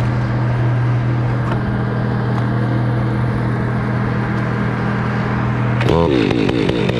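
A chainsaw idles with a steady low rumble nearby.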